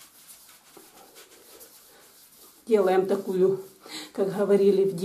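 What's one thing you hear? Hands rub softly against bare skin.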